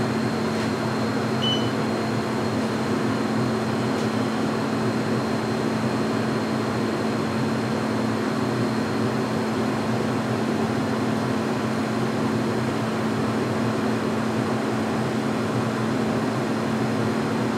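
A furnace blower roars steadily with a low hum.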